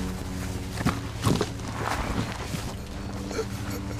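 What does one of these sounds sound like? A middle-aged man sobs close by.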